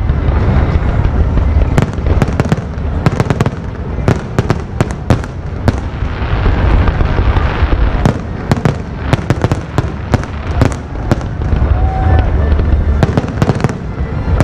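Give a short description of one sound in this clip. Fireworks bang and crackle loudly overhead.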